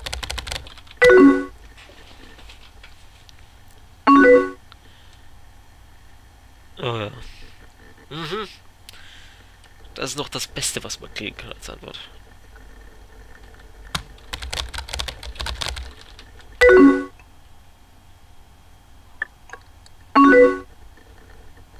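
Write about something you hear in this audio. A short electronic chime sounds several times.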